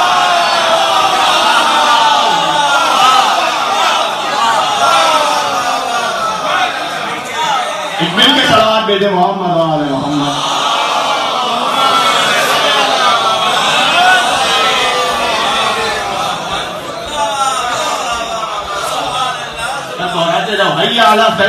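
A man speaks with animation into a microphone, heard through a loudspeaker in an echoing hall.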